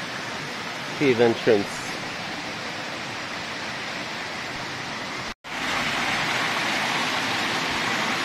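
Water trickles and splashes nearby.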